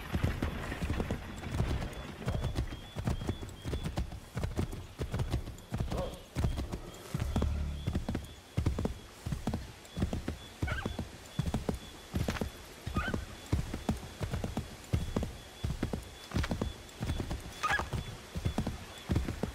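Horse hooves gallop steadily over soft ground.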